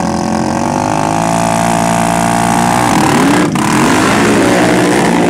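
A quad bike engine roars as the bike speeds off and fades.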